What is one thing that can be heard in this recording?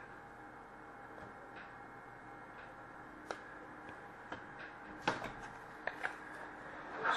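Small objects knock lightly as a hand moves them close by.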